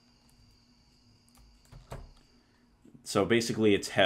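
A wooden door opens and shuts.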